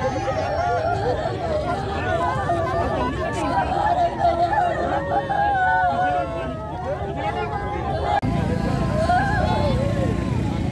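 Several women wail and sob loudly close by.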